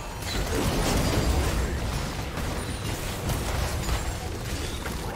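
Game spell effects crackle and boom in a busy fight.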